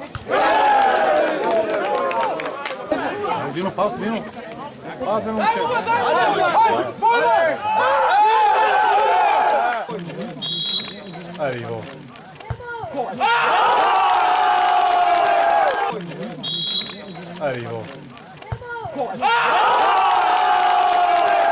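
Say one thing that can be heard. A crowd of men cheers and shouts outdoors.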